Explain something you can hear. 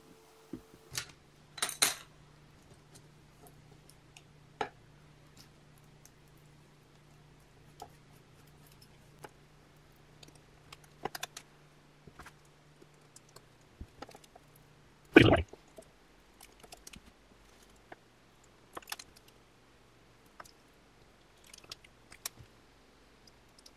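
A wooden stick spreads glue, scraping and tapping on a work surface.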